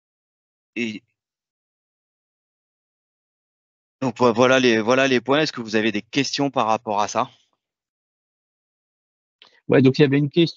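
A man speaks calmly through an online call microphone.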